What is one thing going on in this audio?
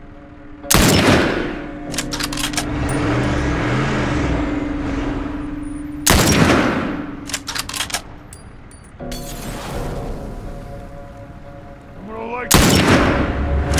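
Loud rifle shots crack and echo.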